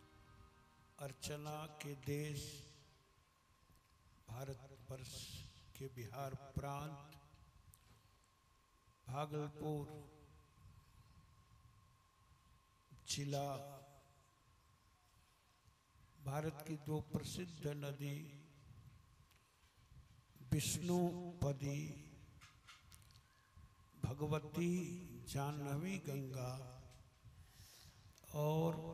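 A middle-aged man speaks calmly into a microphone, in phrases with pauses, heard through a loudspeaker.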